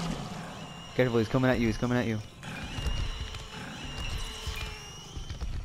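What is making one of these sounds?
A monster lets out loud, shrill screeches.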